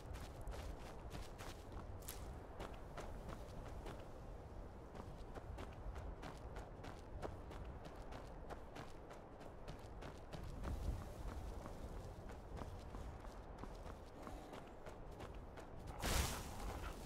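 Footsteps crunch softly through grass.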